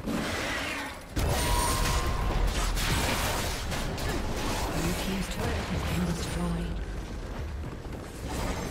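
Video game combat effects burst and crackle with rapid blasts and impacts.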